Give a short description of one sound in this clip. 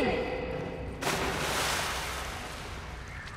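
Water splashes loudly as someone plunges in.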